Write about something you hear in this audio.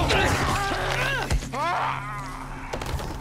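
A zombie growls and snarls up close.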